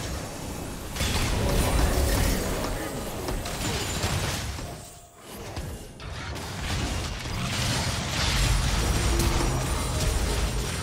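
Game spell effects burst and clash in a loud fight.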